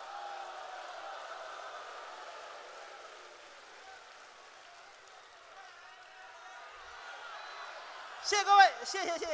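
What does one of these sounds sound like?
A large audience applauds and laughs in a big hall.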